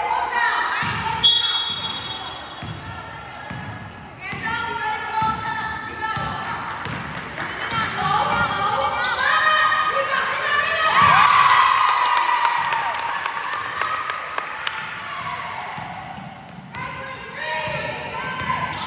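Teenage girls shout and call out to each other across the court.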